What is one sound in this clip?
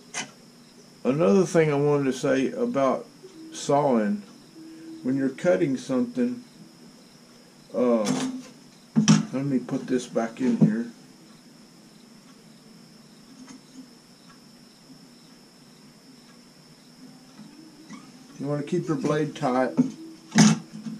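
An elderly man talks calmly close to a microphone.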